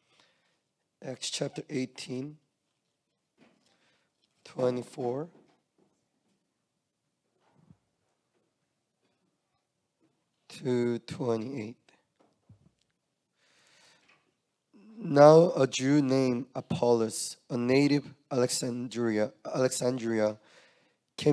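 A young man speaks calmly into a microphone, reading out with pauses.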